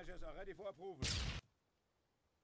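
An explosion booms in a short burst.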